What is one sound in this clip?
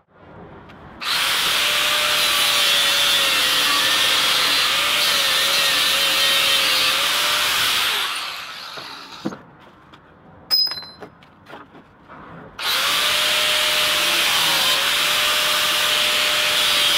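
An angle grinder whines loudly as it cuts metal.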